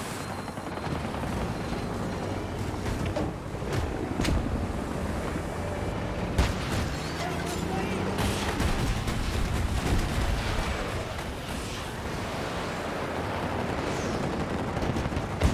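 A tank engine rumbles and its tracks clatter.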